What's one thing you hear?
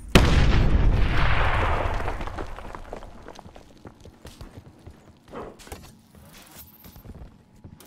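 Broken glass crunches and clatters onto the floor.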